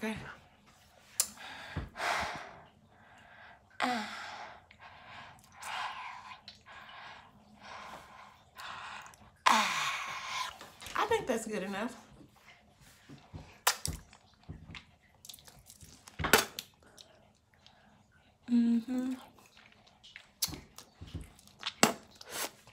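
A young woman makes wet mouth and tongue sounds close by.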